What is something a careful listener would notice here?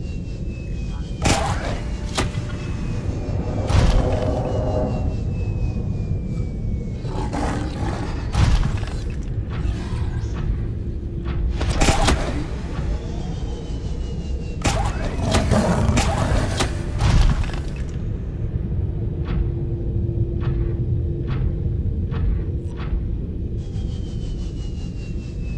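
A deep underwater rumble drones steadily, with sudden bursts now and then.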